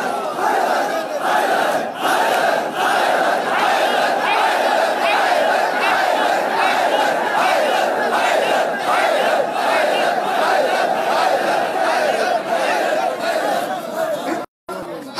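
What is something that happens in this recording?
A young man chants loudly through a microphone and loudspeakers.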